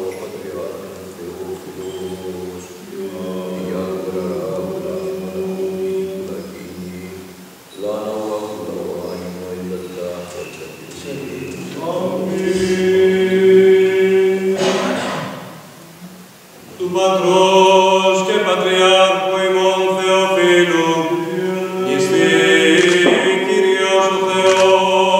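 Men chant slowly together in a large echoing hall.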